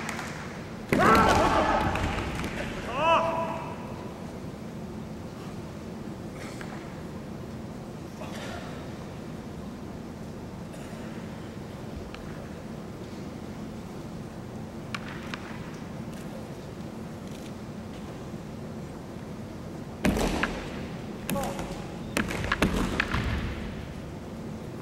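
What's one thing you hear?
Fencers shout loud, drawn-out cries in a large echoing hall.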